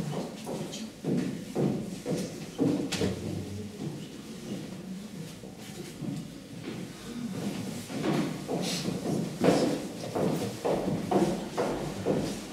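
Footsteps knock on a wooden stage.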